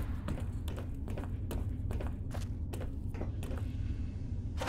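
Footsteps thud steadily on a hard metal floor in an echoing corridor.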